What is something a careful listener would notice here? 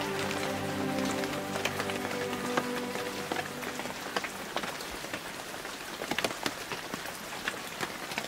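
Heavy rain pours steadily onto a forest canopy.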